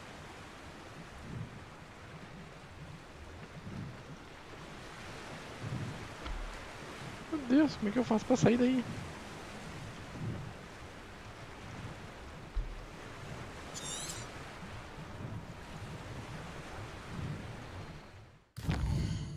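Water laps gently and steadily.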